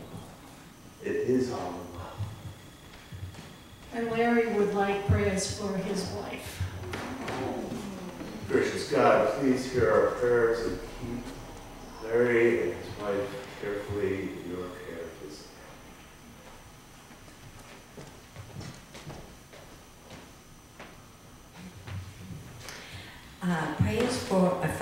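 An elderly man reads aloud calmly in a large echoing hall.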